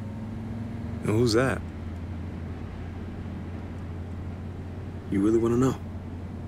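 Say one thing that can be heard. A young man replies in short, tense remarks.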